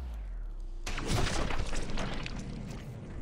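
A gunshot cracks, then rings out.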